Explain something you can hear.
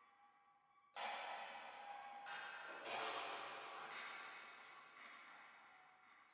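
A paintbrush swishes softly across a canvas.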